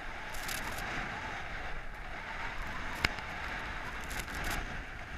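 Skis scrape and hiss steadily over packed snow.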